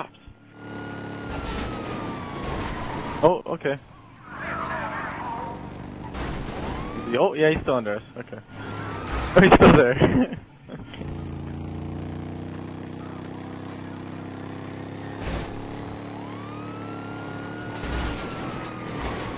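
A police siren wails and glides up and down nearby.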